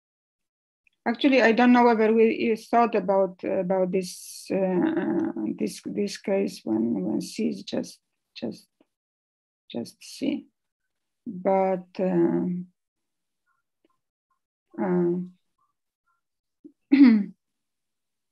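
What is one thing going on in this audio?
An elderly woman speaks calmly over an online call, in short phrases with pauses.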